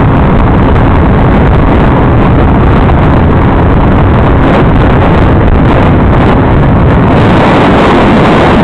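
Wind roars loudly past a fast-moving motorcycle.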